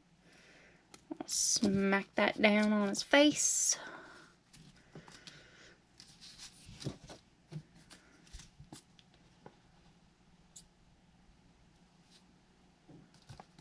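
Paper cutouts rustle softly on a table.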